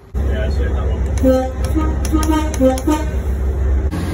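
A train horn blares in short bursts close by.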